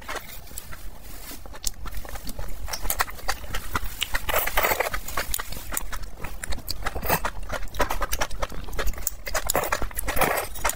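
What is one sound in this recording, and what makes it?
A man chews food wetly with smacking sounds.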